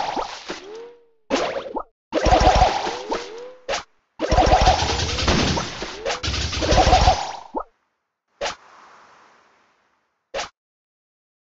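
Video game guns fire in rapid bursts with bouncing electronic effects.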